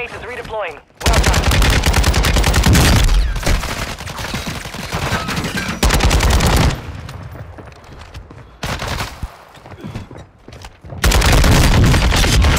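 A rifle fires in rapid, loud bursts.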